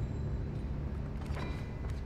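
A playing card flips and slaps down onto a wooden table.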